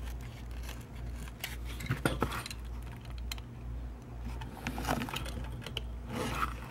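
A knife blade scrapes and taps against wood on a hard board.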